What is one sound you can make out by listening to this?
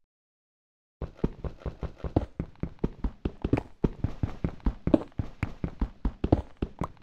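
A pickaxe chips rapidly and repeatedly at stone.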